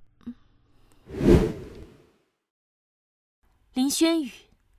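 A young woman speaks into a phone, close by.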